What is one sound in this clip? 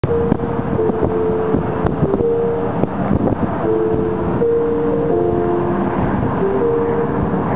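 A vehicle rumbles steadily along a road, heard from inside.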